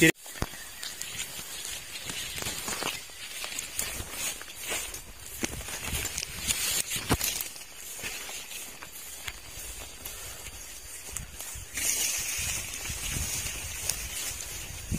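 Leaves and undergrowth rustle and swish close by as someone walks through them.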